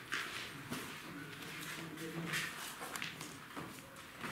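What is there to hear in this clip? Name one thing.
A young woman talks quietly nearby in an echoing room.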